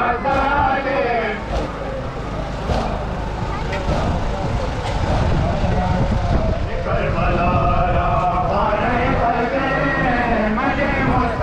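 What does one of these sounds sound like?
A man chants loudly through loudspeakers.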